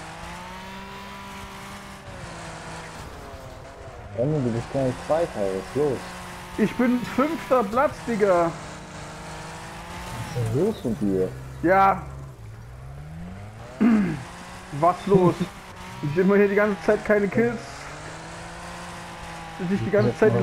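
A car engine drones and revs.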